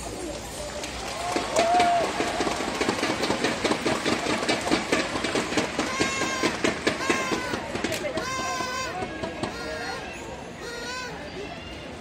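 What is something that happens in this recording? Drums beat in a fast rhythm.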